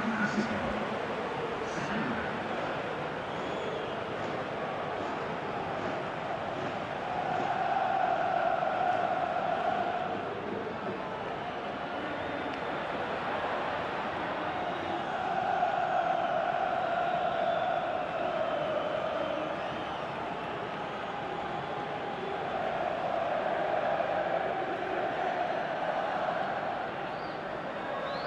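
A large stadium crowd cheers and chants steadily, swelling louder at times.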